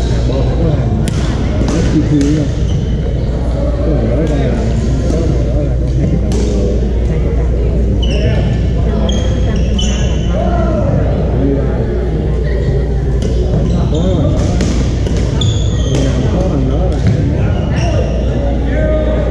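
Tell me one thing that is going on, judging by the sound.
Rubber shoes squeak sharply on a wooden court.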